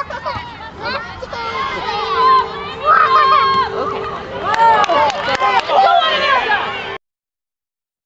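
A crowd of spectators cheers and shouts from nearby.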